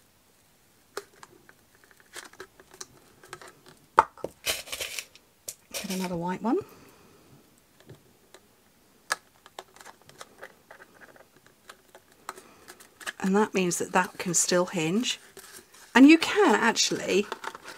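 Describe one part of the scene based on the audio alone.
Paper and ribbon rustle and crinkle softly.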